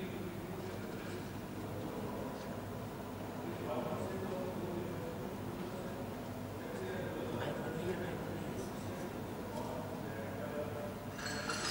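A man speaks steadily through a microphone over loudspeakers.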